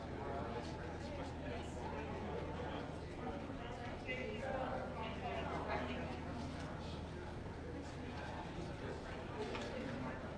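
A crowd of men and women chatter in the background of a large echoing hall.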